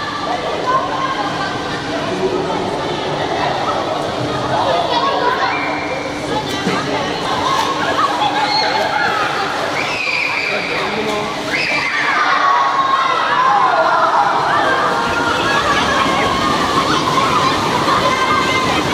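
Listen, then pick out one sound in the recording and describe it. Children shout and cheer excitedly in a large echoing pool hall.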